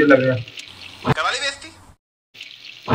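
A young man speaks calmly into a phone microphone.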